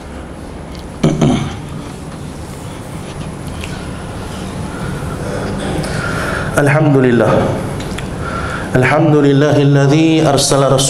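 A man speaks with emphasis through a microphone in a reverberant room.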